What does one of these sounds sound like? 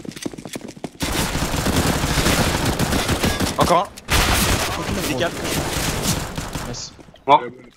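Pistol shots fire rapidly in a game.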